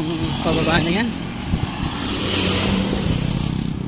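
A motorbike passes close by.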